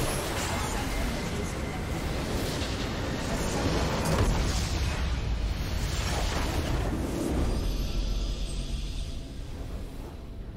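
A game's battle effects crash and rumble loudly, then die away.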